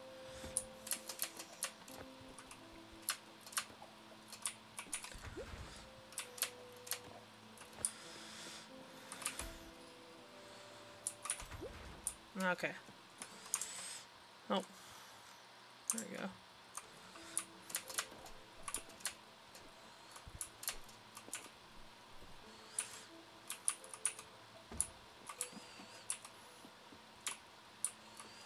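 Short game sound effects click and chime.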